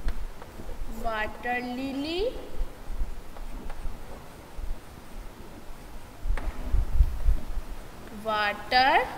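A woman speaks in a raised, sing-song voice, close by.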